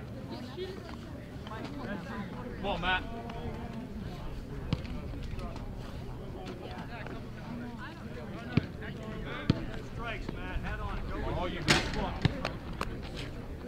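Several men call out and chatter outdoors across a ball field.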